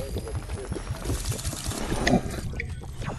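A character gulps down a drink.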